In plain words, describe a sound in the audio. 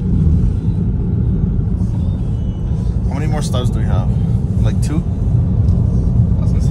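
A car's engine and tyres rumble steadily on the road.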